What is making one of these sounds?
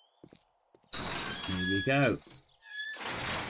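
A metal gate rattles open.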